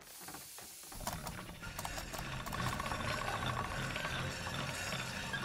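A knife blade scrapes against a turning grindstone.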